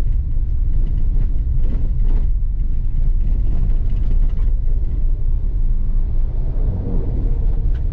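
Tyres crunch and rumble over a dirt road.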